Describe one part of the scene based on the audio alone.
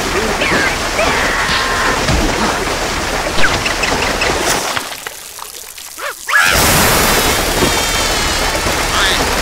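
Water sprays out of a hose with a loud, hissing rush.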